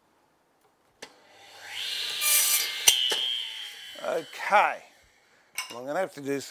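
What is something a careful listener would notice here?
A power saw motor whirs up loudly and then winds down.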